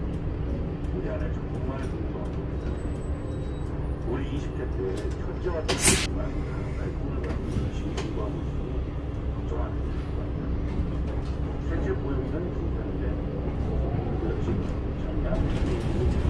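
A bus engine rumbles steadily from inside the bus.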